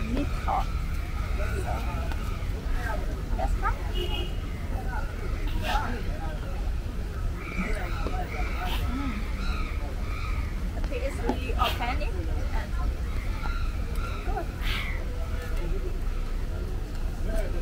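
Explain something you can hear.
A young woman talks cheerfully, close by.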